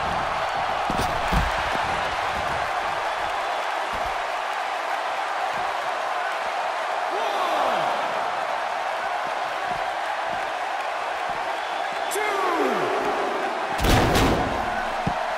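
Bodies thud hard onto the floor.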